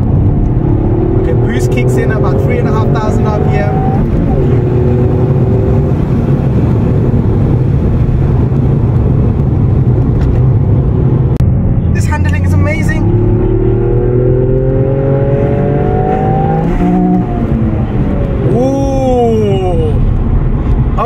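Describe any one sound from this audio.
A car engine revs up and drops in pitch with each gear change.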